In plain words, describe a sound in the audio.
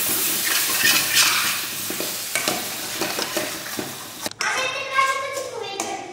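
A spoon scrapes and stirs in a metal pan.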